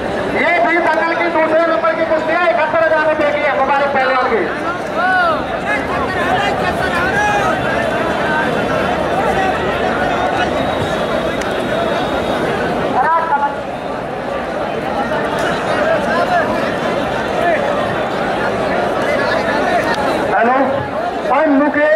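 A large outdoor crowd chatters and shouts loudly.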